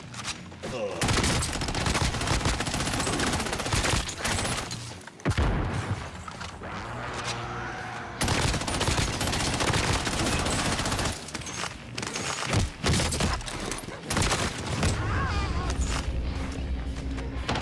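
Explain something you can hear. Rapid gunfire bursts in quick, loud volleys.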